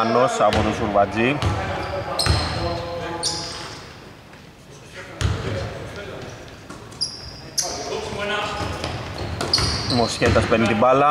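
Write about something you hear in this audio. A man shouts loudly across an echoing hall.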